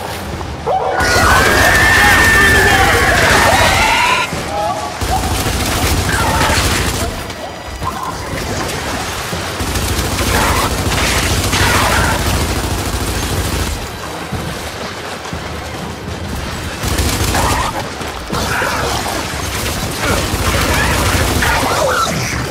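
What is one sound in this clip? Gunfire rattles in bursts, echoing in a tunnel.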